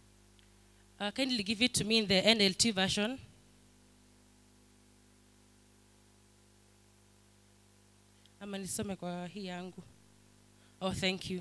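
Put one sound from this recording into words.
A young woman speaks into a microphone, heard through loudspeakers, with pauses between phrases.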